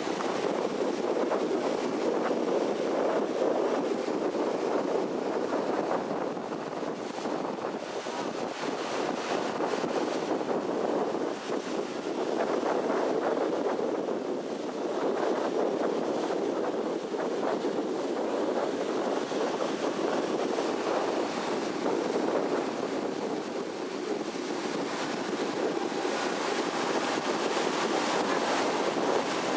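Water splashes against a moving boat's hull.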